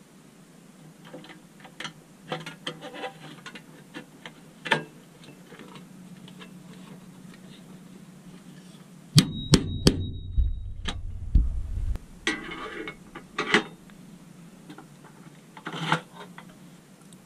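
Metal parts click and tap together as a toy wheel is fitted.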